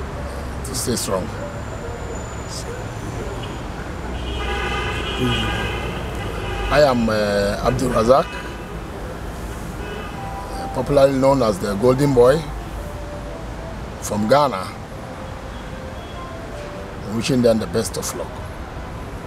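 A middle-aged man speaks close to the microphone in short bursts with pauses.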